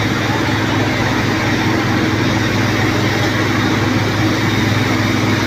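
A fire engine's motor rumbles steadily nearby.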